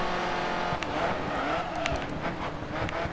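A racing car engine winds down as the car slows near the end.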